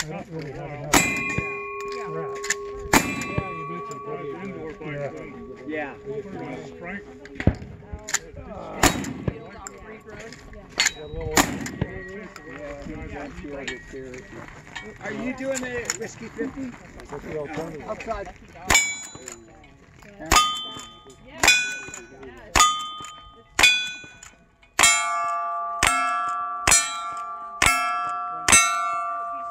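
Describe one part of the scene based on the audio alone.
Gunshots crack one after another outdoors, echoing off a hillside.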